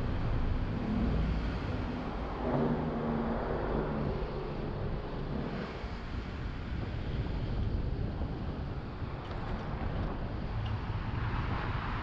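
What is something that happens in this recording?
A car drives slowly with a low, steady rumble.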